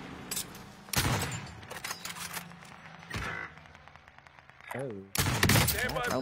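Sniper rifle shots crack loudly.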